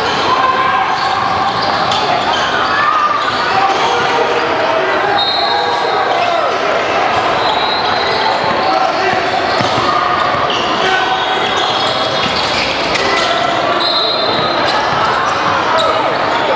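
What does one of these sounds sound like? A crowd of young players and spectators chatters in a large echoing hall.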